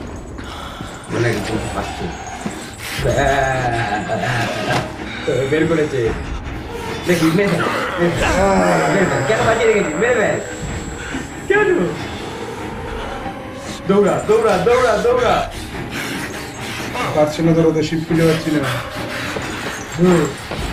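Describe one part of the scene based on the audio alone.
Young men talk and shout excitedly close to a microphone.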